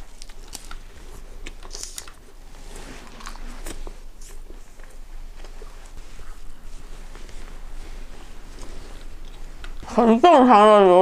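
A young woman chews food close to a microphone with soft, wet mouth sounds.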